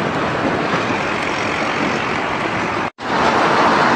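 Flames roar and crackle from a burning truck.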